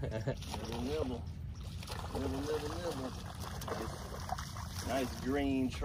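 A fish splashes in the water.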